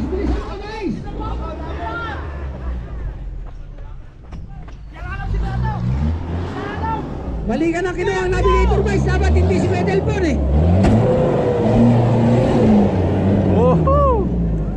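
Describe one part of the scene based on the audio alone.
Men nearby shout with excitement.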